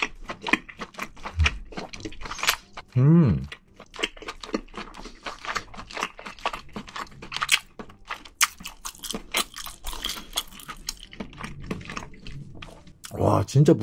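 A young man chews food wetly and close to a microphone.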